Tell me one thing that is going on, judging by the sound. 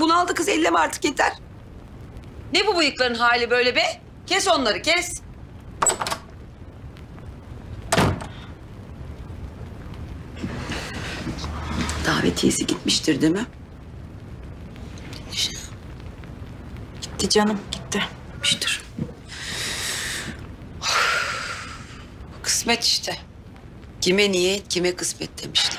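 A middle-aged woman speaks quietly and sadly nearby.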